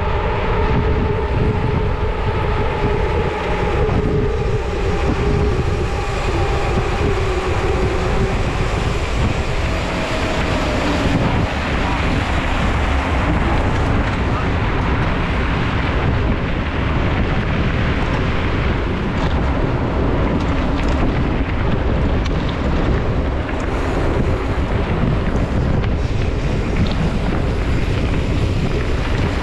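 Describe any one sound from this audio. Wind buffets loudly against a microphone while riding outdoors.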